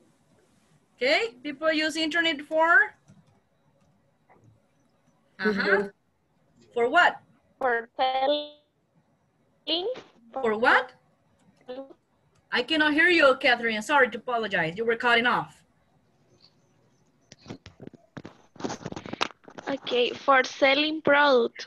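A woman speaks with animation over an online call, in short bursts with pauses.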